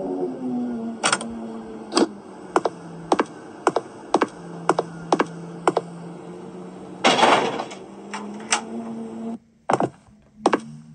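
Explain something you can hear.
Footsteps thud at a steady walking pace from a tablet game's speaker.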